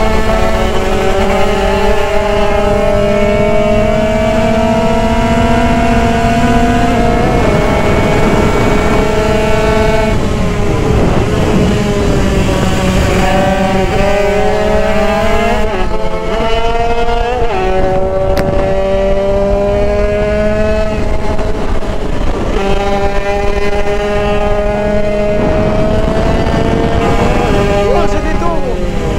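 A motorcycle engine roars up close, rising and falling in pitch as it shifts gears.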